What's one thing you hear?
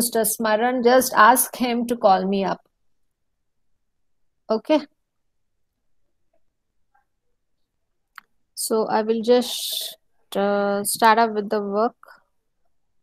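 A young woman speaks calmly into a close microphone, pausing between phrases.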